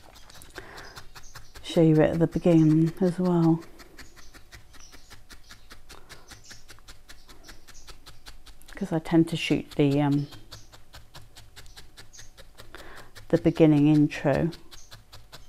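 A felting needle pokes rapidly into wool with soft, quick, steady stabs.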